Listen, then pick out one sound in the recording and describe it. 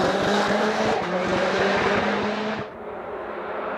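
A race car engine roars loudly as it speeds past and fades away.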